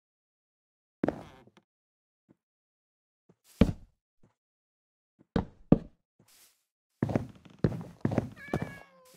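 Wooden blocks thump and crack as they are placed and broken in a game.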